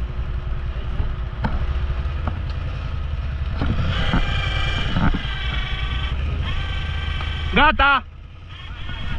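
A quad bike engine rumbles and revs loudly nearby.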